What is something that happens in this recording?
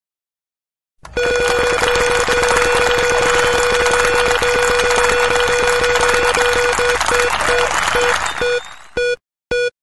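A game wheel spins with a rapid clattering rush of ticks.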